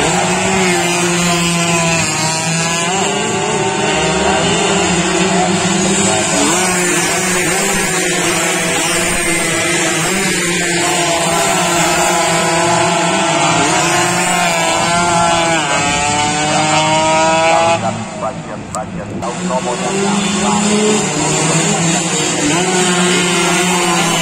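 Racing motorcycle engines rev and whine loudly as bikes speed past.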